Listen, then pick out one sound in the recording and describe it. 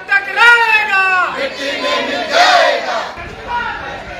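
A crowd of men chants slogans loudly outdoors.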